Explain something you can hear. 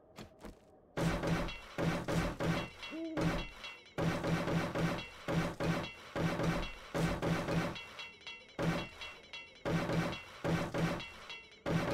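A hammer bangs rapidly and repeatedly on stone.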